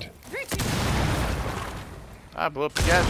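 A rifle fires a burst of gunshots.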